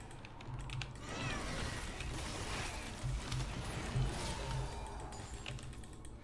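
Game spell effects whoosh and crackle in a burst of combat.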